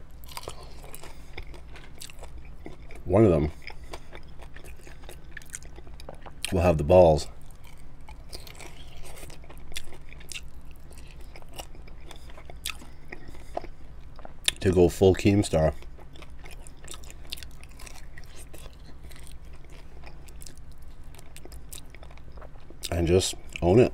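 A man chews chicken wings with wet smacking close to a microphone.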